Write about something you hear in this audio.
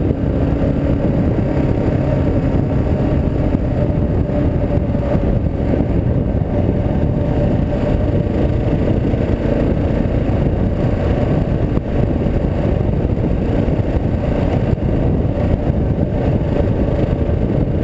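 Tyres crunch over a gravel dirt track.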